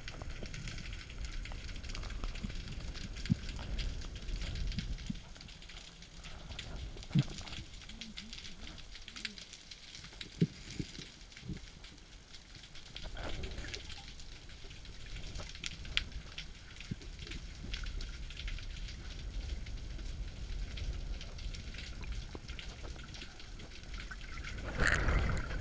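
Muffled water hisses and crackles close by, as heard underwater.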